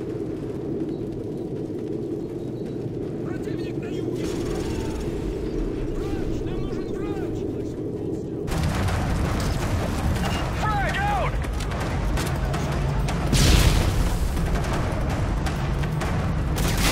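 Gunshots crack in rapid bursts nearby.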